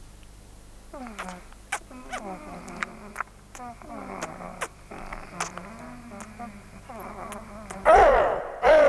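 A young woman speaks softly and fearfully nearby.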